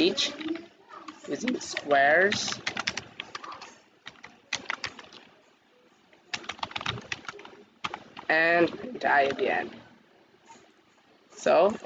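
A young man speaks calmly and closely into a microphone.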